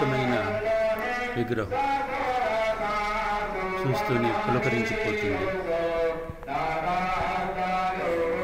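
A crowd sings a hymn together.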